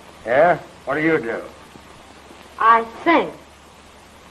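A man speaks calmly, heard through an old, thin recording.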